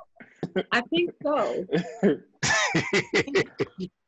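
A man laughs heartily over an online call.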